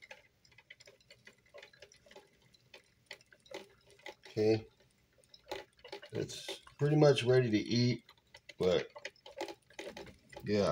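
A pot of stew bubbles and simmers softly.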